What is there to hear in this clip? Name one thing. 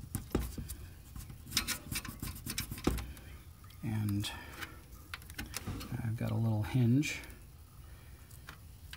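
Plastic parts click and snap together close by.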